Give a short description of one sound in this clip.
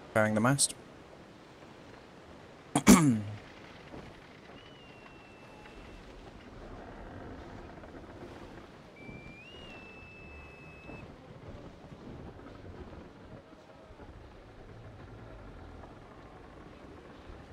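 Waves wash steadily against a ship's hull.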